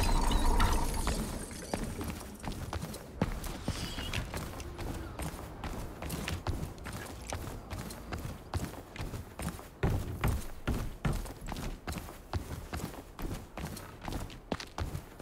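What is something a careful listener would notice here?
Footsteps run quickly over hard floors.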